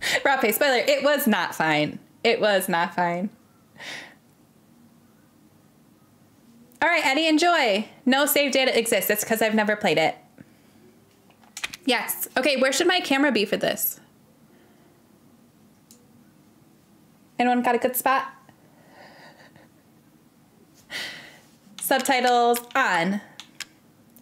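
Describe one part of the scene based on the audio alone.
A young woman talks with animation into a close microphone, in bursts with pauses.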